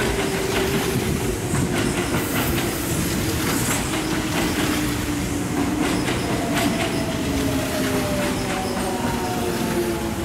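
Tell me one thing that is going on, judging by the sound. A train's motor whines with a slowly shifting pitch.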